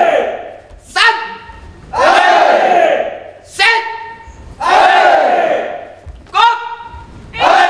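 A young man shouts a count loudly in a large echoing hall.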